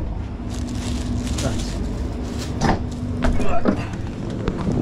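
Plastic bags rustle and crinkle in hands.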